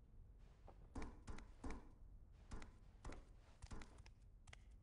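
Metal ladder rungs clank as someone climbs.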